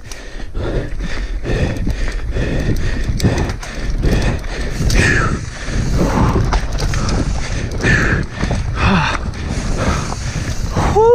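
A bike chain and frame clatter over bumps.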